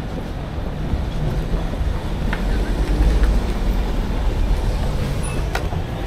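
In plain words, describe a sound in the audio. Traffic rumbles by on a street outdoors.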